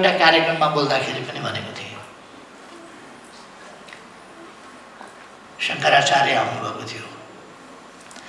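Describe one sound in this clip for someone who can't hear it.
An elderly man speaks calmly into a microphone, with pauses.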